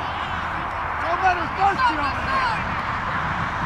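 Young boys shout excitedly during play.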